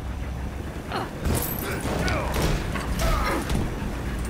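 A burst of flame roars.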